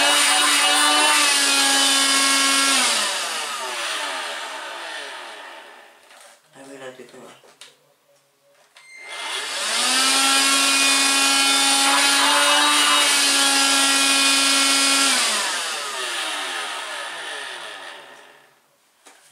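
A small handheld electric motor whirs loudly at a high pitch, winds down, then starts up again and winds down once more.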